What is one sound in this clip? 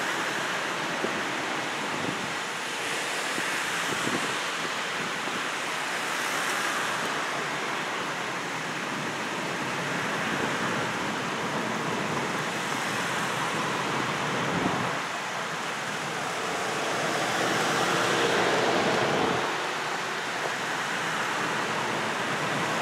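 Cars drive past one after another on a road outdoors.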